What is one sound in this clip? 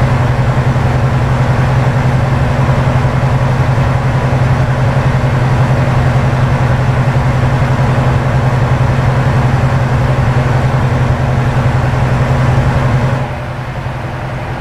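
A truck engine drones steadily from inside the cab, then drops quieter near the end.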